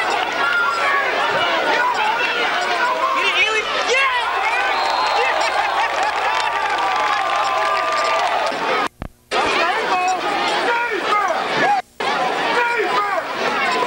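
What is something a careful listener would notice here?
Football players shout and call out across an open field.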